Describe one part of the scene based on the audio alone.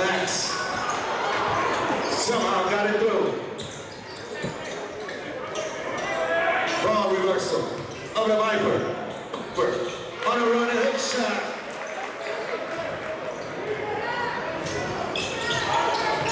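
A crowd cheers in a large echoing gym.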